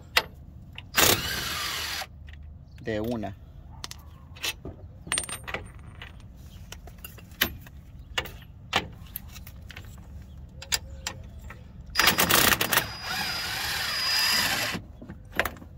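An impact wrench whirs and rattles in loud bursts.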